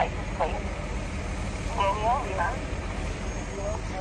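A bus engine rumbles as the bus drives slowly past.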